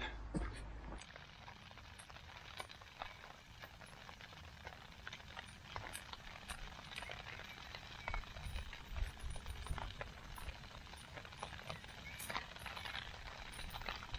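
A camping stove hisses steadily.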